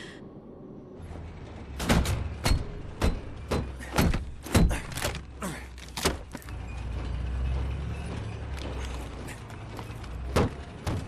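A car engine rumbles as a car drives.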